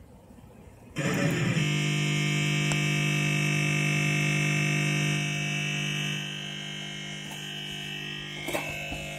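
A loud, harsh buzzing tone blares from a computer loudspeaker.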